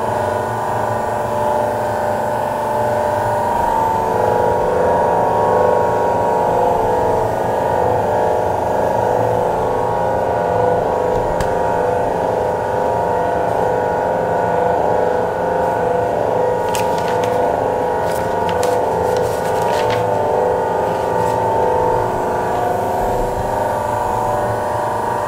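Electrical equipment hums steadily.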